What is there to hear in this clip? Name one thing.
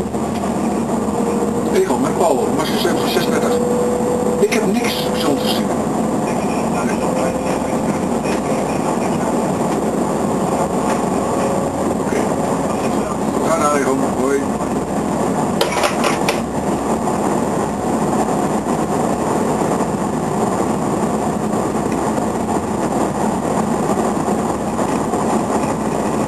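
A train rumbles steadily along the tracks at speed.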